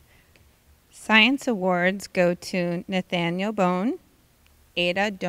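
A woman reads out clearly through a microphone.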